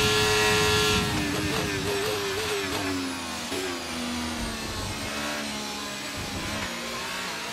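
A racing car engine drops in pitch as the car brakes and downshifts.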